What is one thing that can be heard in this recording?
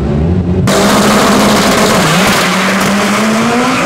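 Two drag racing cars launch with a loud roar of engines.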